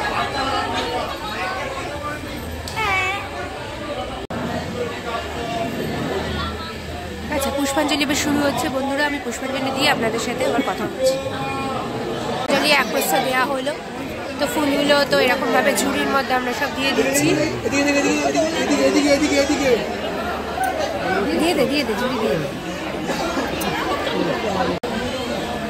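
A dense crowd of men and women talks and calls out all around, close by, in a loud echoing space.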